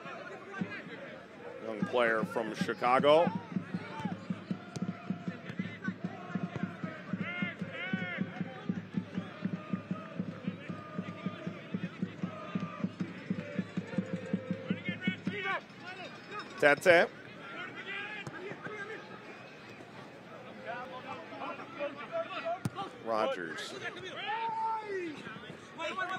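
A crowd cheers and murmurs in an open-air stadium.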